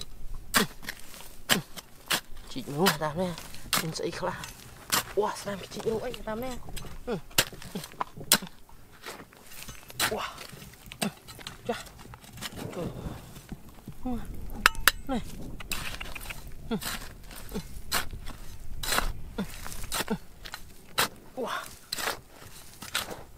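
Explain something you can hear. Loose dirt and pebbles scatter and patter on the ground.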